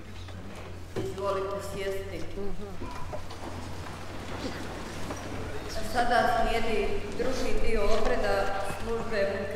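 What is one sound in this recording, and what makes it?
A congregation sings together in an echoing hall.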